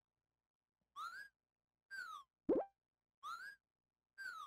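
Short electronic bleeps click through a game menu.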